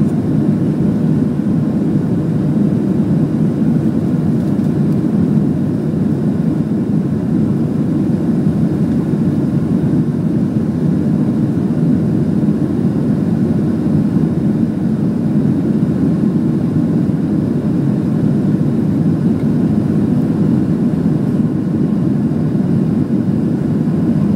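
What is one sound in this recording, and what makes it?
Jet engines roar steadily, heard from inside an aircraft cabin.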